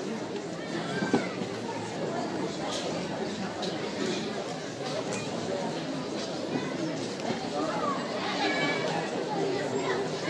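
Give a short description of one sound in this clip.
A crowd of men and women chatters loudly in an echoing hall.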